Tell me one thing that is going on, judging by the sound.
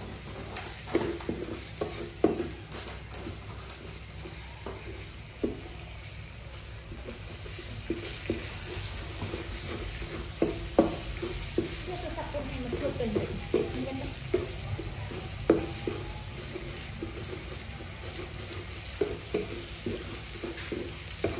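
A wooden spatula scrapes and knocks against a metal wok.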